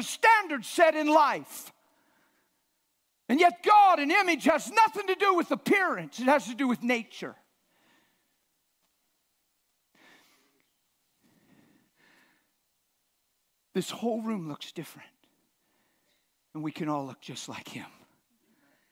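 An older man preaches with animation through a microphone, pausing between phrases.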